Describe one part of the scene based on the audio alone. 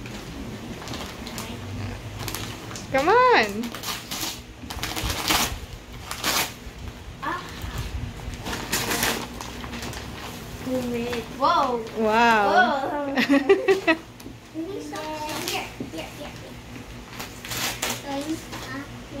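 Wrapping paper crinkles and tears as a gift is unwrapped.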